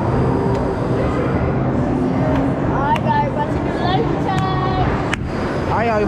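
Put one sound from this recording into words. A crowd of children and adults chatters loudly all around in an echoing hall.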